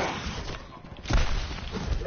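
Guns fire in rapid bursts with sharp electronic blasts.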